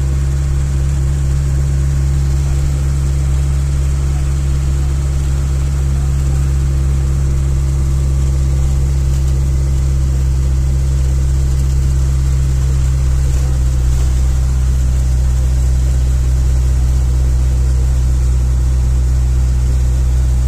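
Tyres hum on the road surface.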